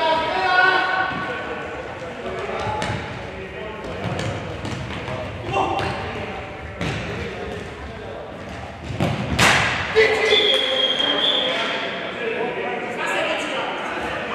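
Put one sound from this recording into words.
Men shout to each other during play.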